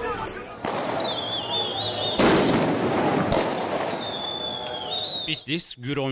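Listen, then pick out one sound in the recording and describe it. A flare hisses and crackles on the ground.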